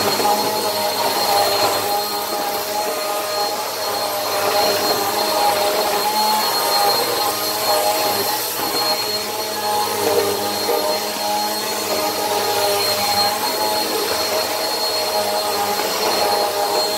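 A vacuum cleaner motor whines loudly and steadily.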